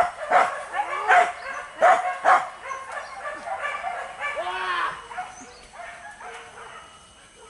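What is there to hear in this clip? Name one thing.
A bird calls close by with loud, harsh, chattering notes.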